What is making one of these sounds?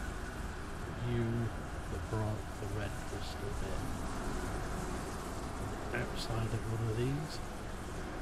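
A man talks casually into a nearby microphone.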